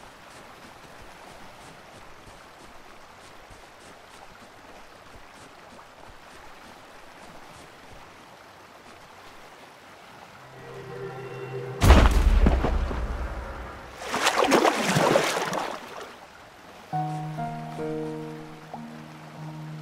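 Waves wash softly onto a shore.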